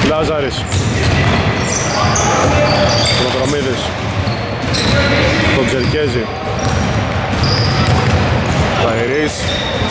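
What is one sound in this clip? A basketball bounces with dull thuds.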